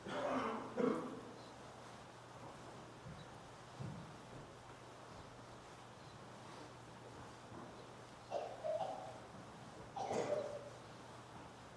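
A man intones short phrases in a large echoing hall.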